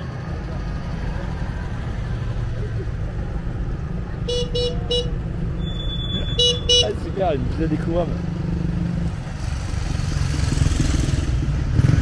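Classic cars drive past in traffic.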